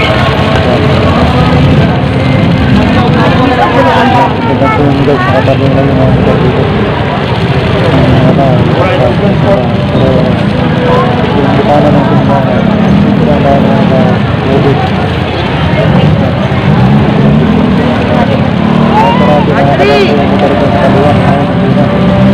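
A crowd of people chatters on a busy outdoor street.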